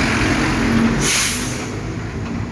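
A bus releases air brakes with a loud hiss.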